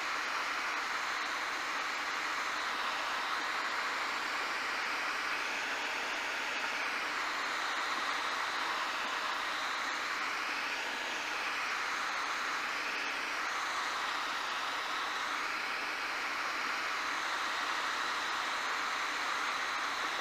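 A helicopter engine and rotor roar steadily from inside the cabin.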